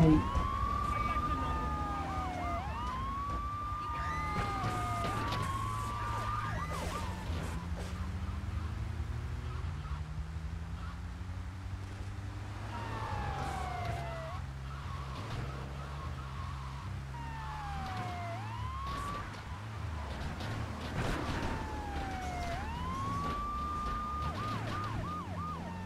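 A police siren wails in rising and falling sweeps.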